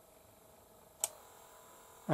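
A switch clicks once.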